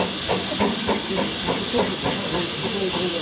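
A steam locomotive chuffs rhythmically in the distance.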